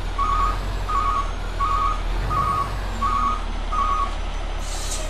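A truck's reversing alarm beeps in a steady rhythm.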